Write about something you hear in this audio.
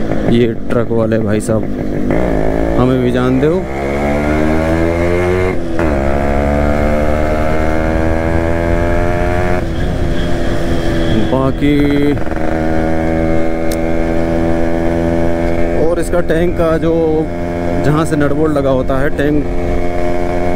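A motorcycle engine thrums steadily, rising and falling in pitch as it shifts gears.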